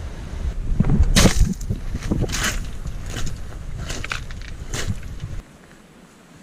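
Footsteps crunch on loose pebbles.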